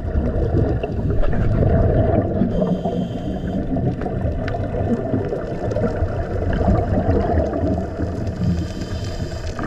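A diver breathes slowly through a regulator.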